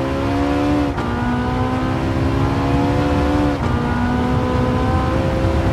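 A racing car engine revs high, dropping briefly in pitch at each gear change and climbing again.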